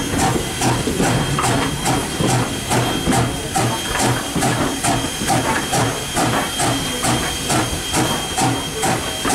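A steam locomotive's air pump chugs in a steady, rapid rhythm close by.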